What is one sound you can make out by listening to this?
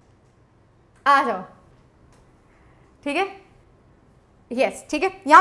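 A young woman speaks brightly and with animation into a close microphone, in short bursts.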